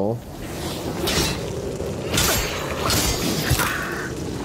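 Blades clash and slash in quick, sharp hits.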